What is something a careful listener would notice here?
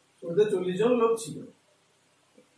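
A man speaks loudly and briefly, close by.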